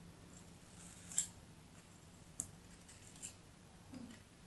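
A knife blade scrapes across packed sand.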